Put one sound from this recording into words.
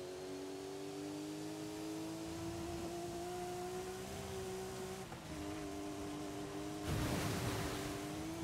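A racing car engine hums steadily, its pitch shifting with gear changes.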